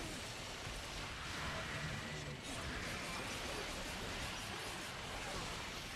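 Swords clash and magic blasts burst in a fast fight.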